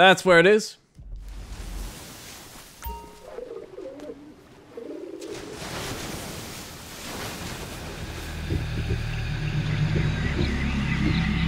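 Waves wash against rocks nearby.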